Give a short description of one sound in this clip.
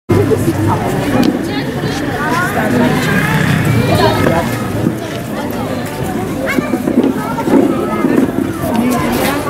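A crowd of children and adults chatters all around outdoors.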